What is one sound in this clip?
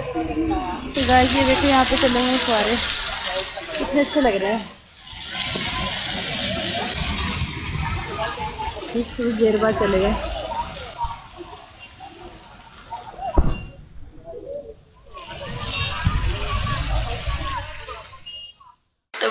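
Fountain water splashes and sprays steadily.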